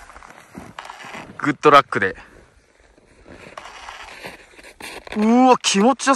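A snowboard carves through deep powder snow.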